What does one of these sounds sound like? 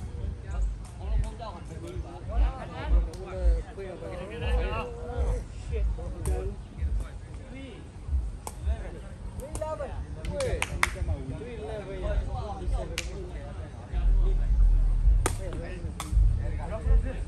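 Men talk and call out to each other outdoors at a distance.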